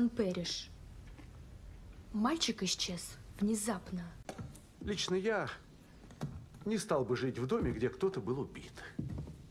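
A young girl speaks quietly and calmly nearby.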